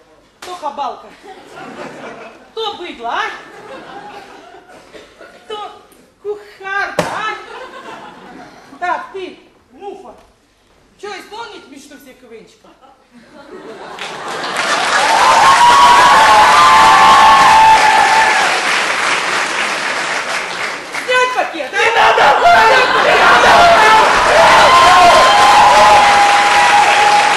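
A young man speaks loudly through a microphone in a large echoing hall.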